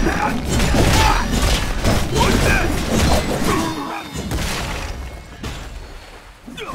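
Swords clash and slash with loud whooshing impacts.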